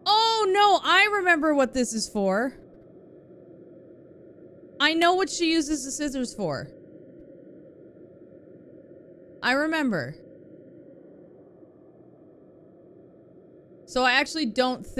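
A young woman talks animatedly into a microphone in short bursts.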